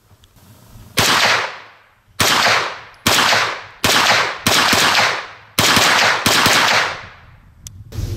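A rifle fires single loud shots outdoors, each echoing briefly.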